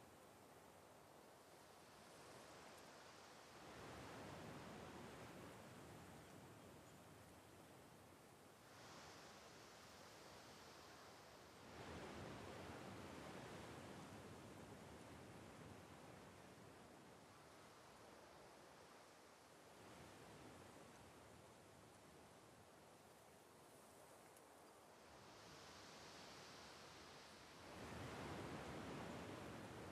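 Waves break on a shore and wash up the sand in slow surges.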